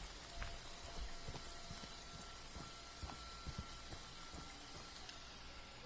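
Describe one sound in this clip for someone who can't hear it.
Rain patters steadily on the ground.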